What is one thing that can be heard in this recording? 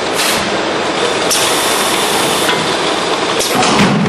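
Plastic bottles clatter and knock together in a packing machine.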